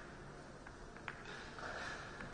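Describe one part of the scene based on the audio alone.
Pool balls click together as they are picked up from the table.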